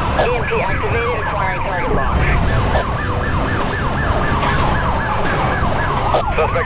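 Police sirens wail rapidly up and down.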